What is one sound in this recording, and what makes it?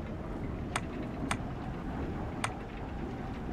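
Short menu clicks sound as a game menu is scrolled.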